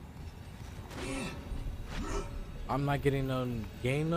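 A young man speaks close into a microphone with animation.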